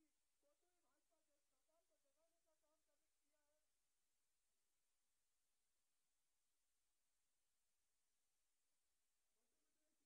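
A crowd of people murmurs.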